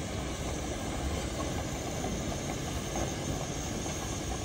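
Steam hisses loudly from a steam locomotive.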